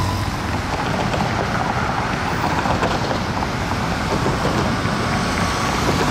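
A bus drives up along a street with a low engine hum.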